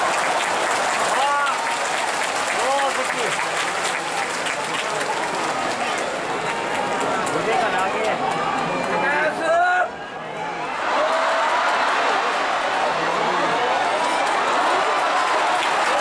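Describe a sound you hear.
A man calls out loudly and rhythmically in a high voice.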